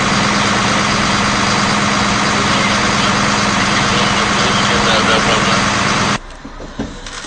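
A fire engine idles loudly nearby.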